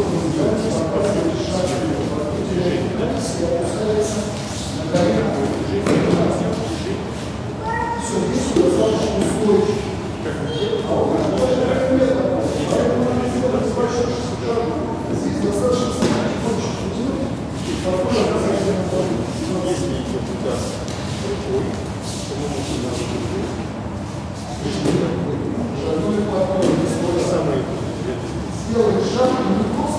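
An adult man speaks calmly, with echo.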